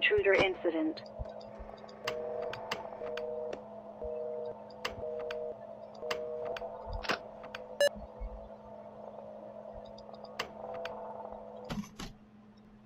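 Electronic static crackles with sharp clicks as views switch.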